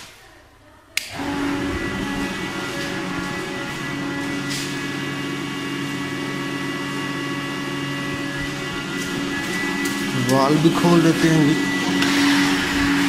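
An electric water pump motor hums steadily.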